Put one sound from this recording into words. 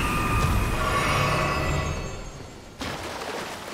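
A magic spell hums and chimes.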